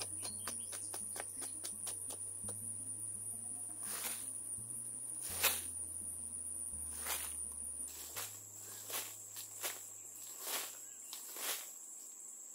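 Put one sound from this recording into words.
A digging stick thuds into soil.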